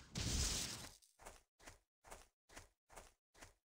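Footsteps tap evenly on stone steps.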